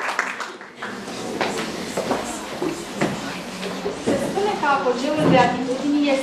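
A young woman speaks clearly to an audience through a microphone.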